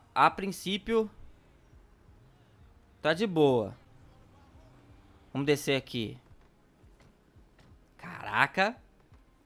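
A young man talks with animation in short bursts, close to a microphone.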